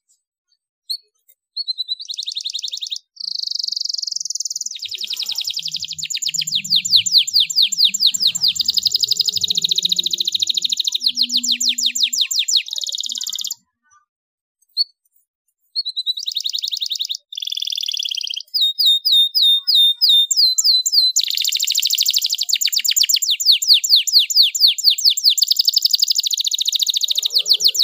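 A canary sings loudly and close by in long, rapid trills and chirps, with short pauses.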